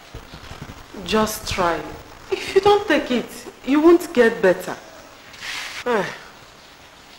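A young woman speaks tearfully, close by.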